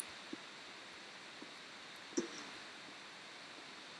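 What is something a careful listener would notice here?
A pickaxe chips and cracks at stone.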